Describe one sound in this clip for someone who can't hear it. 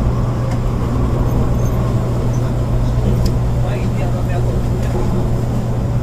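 A train hums and rumbles steadily along the tracks.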